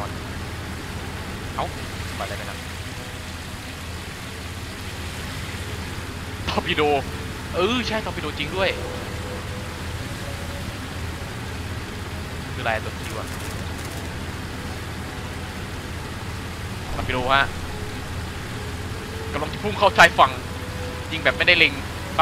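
A boat engine drones steadily at speed.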